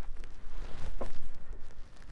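A shoe thumps down on a hard floor.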